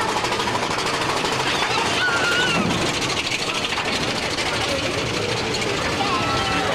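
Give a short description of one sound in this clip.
A roller coaster train rattles and clatters steadily along its track.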